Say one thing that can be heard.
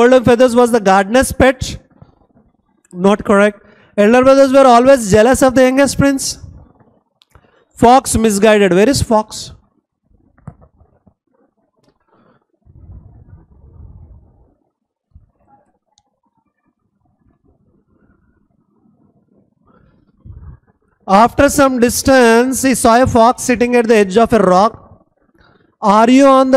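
A man reads aloud calmly through a close microphone, with pauses.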